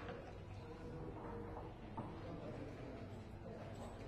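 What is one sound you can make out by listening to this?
Dice rattle in a cup and tumble onto a board.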